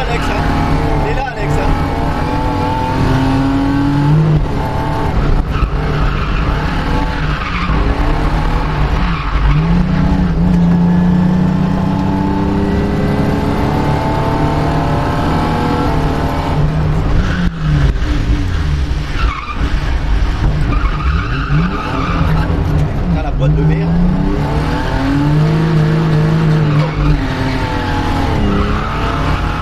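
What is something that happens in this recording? A car engine roars loudly from inside the cabin, revving up and down throughout.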